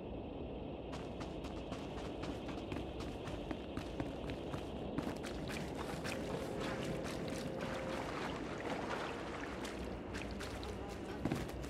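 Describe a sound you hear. Quick footsteps run over the ground.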